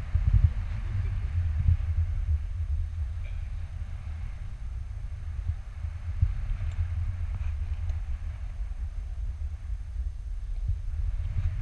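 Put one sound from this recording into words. Strong wind rushes and buffets against a microphone.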